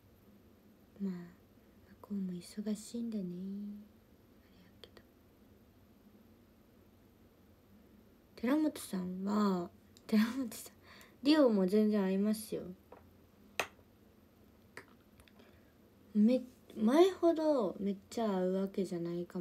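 A young woman speaks calmly and close to a microphone, in short bursts with pauses.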